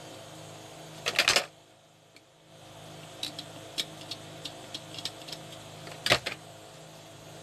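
A soldering iron tip taps and clicks against a circuit board.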